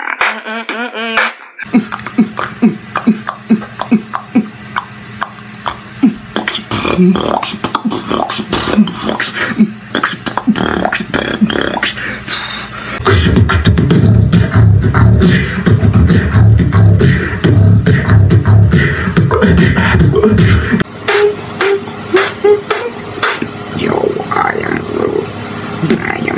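A young man beatboxes close to a microphone with fast, punchy beats.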